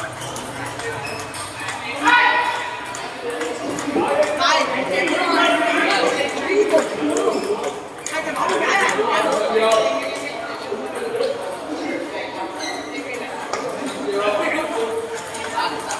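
Men talk and call out with animation nearby.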